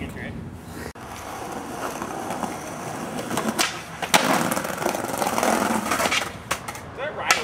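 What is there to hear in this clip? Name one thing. Skateboard wheels roll and rumble on concrete.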